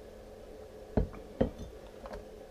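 A glass bottle knocks twice as it is set down on a table.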